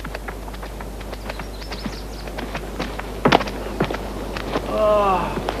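Footsteps crunch on gravelly ground.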